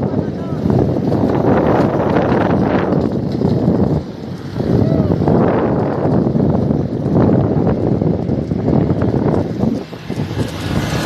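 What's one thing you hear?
Wind buffets the microphone outdoors, roaring in gusts.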